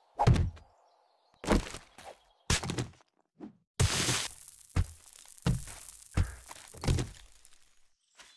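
A pickaxe strikes rock with sharp, heavy blows.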